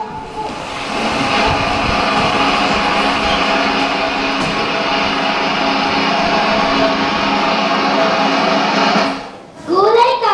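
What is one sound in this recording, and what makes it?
Children sing a song together loudly.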